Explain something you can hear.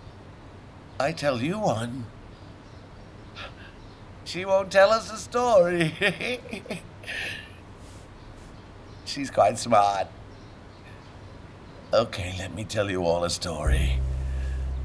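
An elderly man speaks warmly and calmly.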